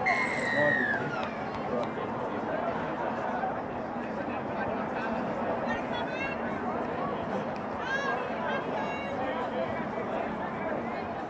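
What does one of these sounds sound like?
A crowd chatters steadily in the distance outdoors.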